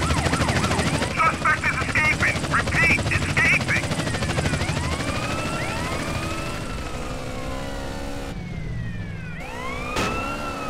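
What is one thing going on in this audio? A sport motorcycle engine runs.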